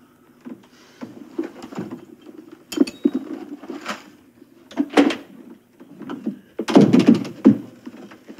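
A man rummages through things with soft knocks and rustles close by.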